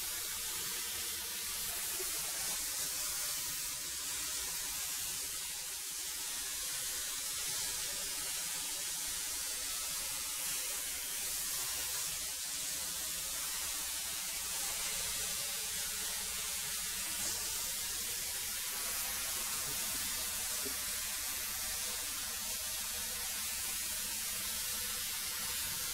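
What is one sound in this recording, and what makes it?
A thickness planer roars steadily as boards feed through it.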